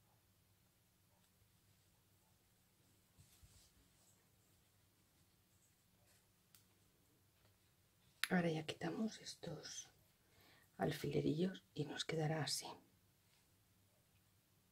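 Cloth rustles softly under handling fingers.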